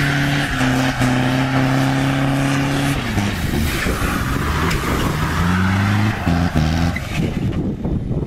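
A car engine revs hard nearby.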